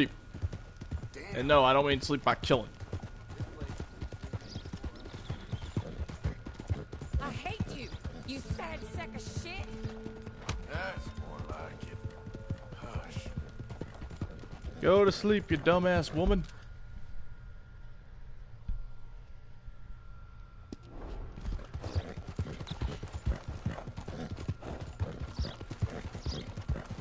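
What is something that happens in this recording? Horse hooves pound steadily on a dirt trail at a gallop.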